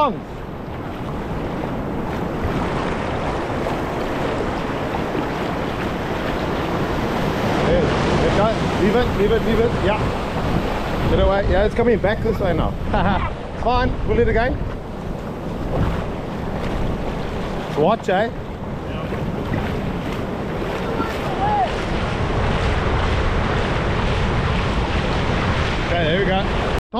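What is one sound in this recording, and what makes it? Shallow surf washes and foams over sand, heard outdoors.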